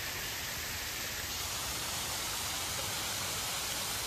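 A waterfall splashes steadily nearby.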